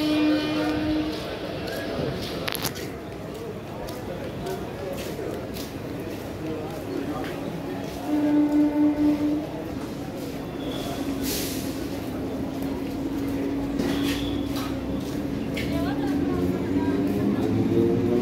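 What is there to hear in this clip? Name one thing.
A passenger train rolls slowly along the rails, with wheels clattering.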